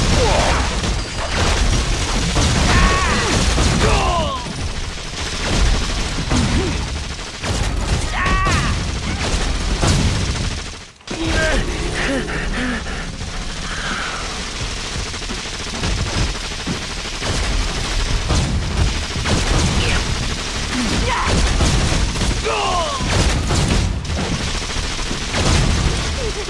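Fiery blasts burst with loud booms.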